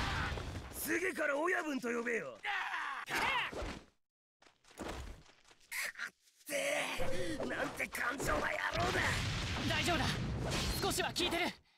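A sword slashes through the air with sharp whooshes.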